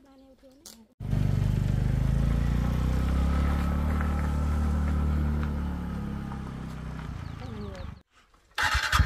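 A motorcycle engine hums and fades as the motorcycle rides away.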